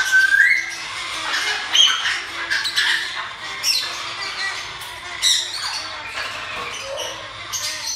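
Many small birds chirp and squawk close by.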